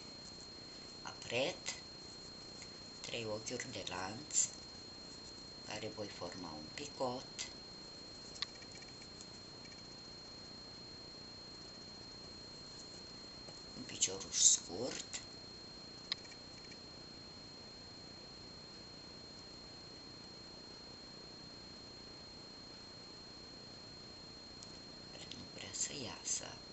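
A crochet hook softly draws yarn through stitches.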